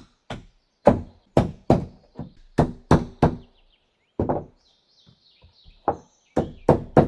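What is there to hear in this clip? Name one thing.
A hammer knocks on wooden boards in sharp, quick blows.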